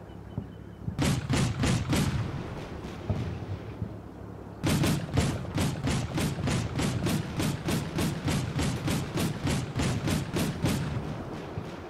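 Machine guns fire in rapid bursts nearby.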